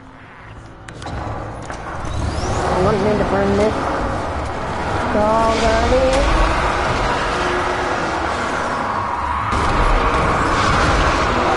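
A vehicle engine roars loudly, its pitch rising and falling.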